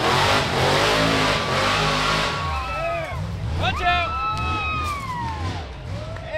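A dirt bike engine roars close by, then revs up and down as it moves away.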